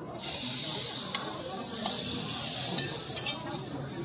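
Metal tongs scrape against a metal plate.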